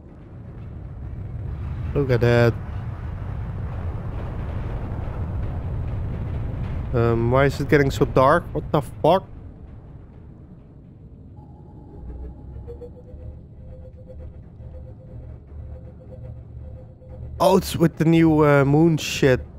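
A deep underwater rumble drones steadily.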